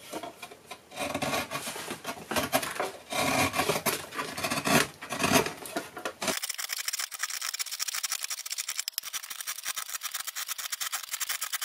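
A chisel scrapes and shaves wood.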